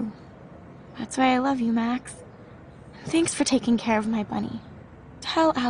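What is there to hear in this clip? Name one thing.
A woman answers warmly, close by.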